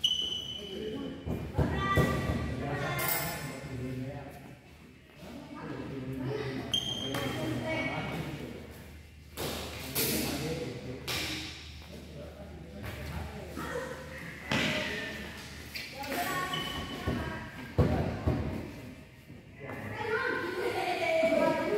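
Men call out and chatter nearby in an echoing hall.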